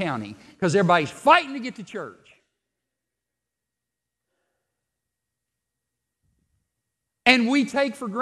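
A man speaks with animation into a headset microphone, pausing between phrases.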